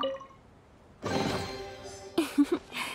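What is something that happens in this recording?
A treasure chest creaks open with a bright magical shimmer.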